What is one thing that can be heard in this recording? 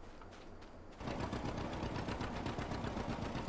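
A tractor engine chugs steadily.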